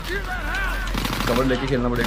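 A rifle fires in rapid shots.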